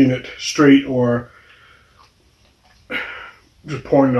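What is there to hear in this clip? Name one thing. A cap clicks as a man twists open a small glass bottle.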